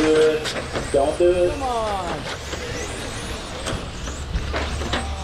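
Small electric model cars whine as they race around a track.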